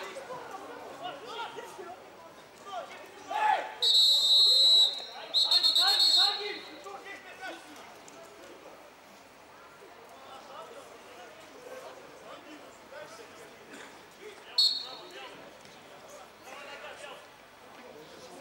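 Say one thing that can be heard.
Men shout to each other across an open pitch.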